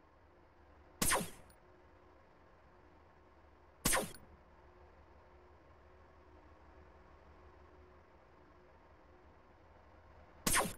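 A game gun fires with a sharp zap.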